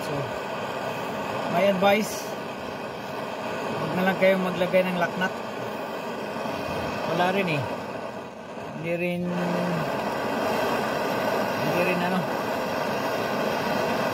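Air and sealant hiss steadily from a can into a tyre valve.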